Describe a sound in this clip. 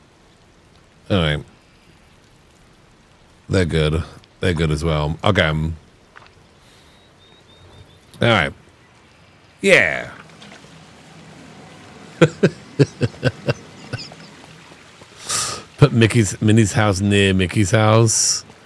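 A man speaks casually and with animation into a close microphone.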